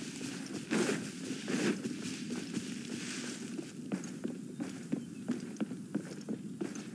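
Footsteps run across grass.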